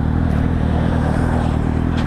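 A truck rumbles past close by.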